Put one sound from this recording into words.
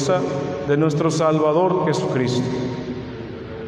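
A man sings through a microphone in a large echoing hall.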